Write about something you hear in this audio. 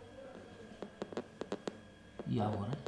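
Neck joints crack with quick, sharp pops.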